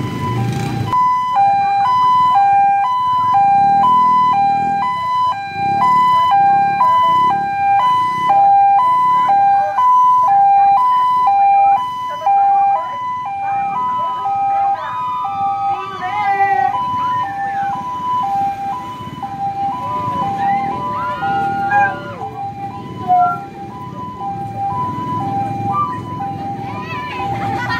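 An ambulance siren wails in a steady two-tone pattern close by.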